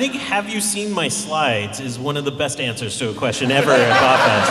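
A man speaks through a microphone in a large hall.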